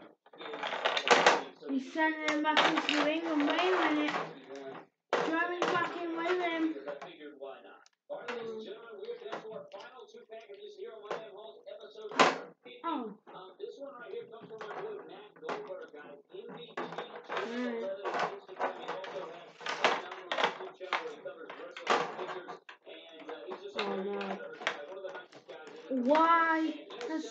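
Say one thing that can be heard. Plastic toy figures knock and clatter together.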